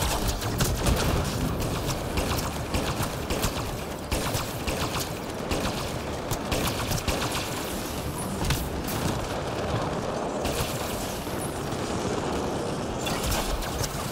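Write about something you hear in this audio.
Rapid gunfire rattles in bursts.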